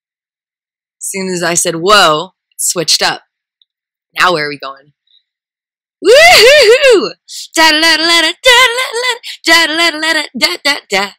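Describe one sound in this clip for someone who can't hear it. A young woman speaks and exclaims excitedly close by.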